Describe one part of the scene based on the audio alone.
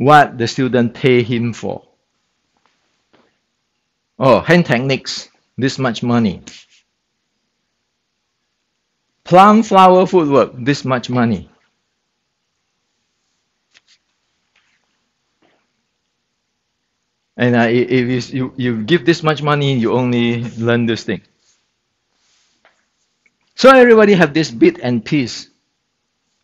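A middle-aged man speaks calmly and close by, pausing between phrases.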